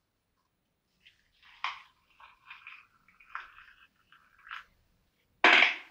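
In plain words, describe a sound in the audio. Hot water pours from a kettle into a cup.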